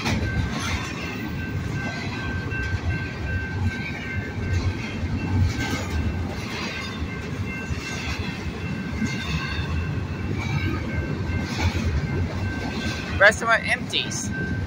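A freight train rumbles past close by with wheels clattering over the rails.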